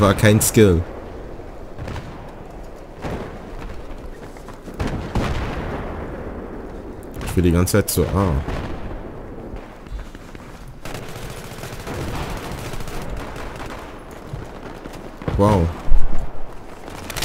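Gunshots ring out now and then.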